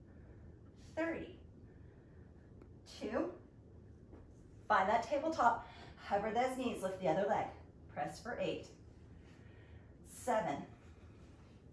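A woman speaks calmly, close by, in short phrases.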